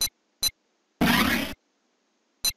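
A brief electronic whoosh sounds.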